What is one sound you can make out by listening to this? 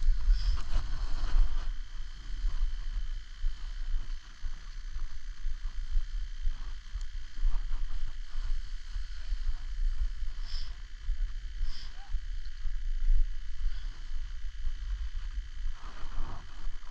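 A snowboard scrapes and hisses over snow.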